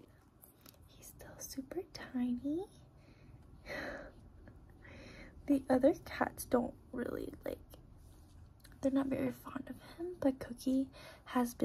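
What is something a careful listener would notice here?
A young woman talks softly and cheerfully close by.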